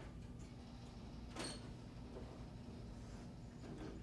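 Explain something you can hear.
An elevator door slides shut.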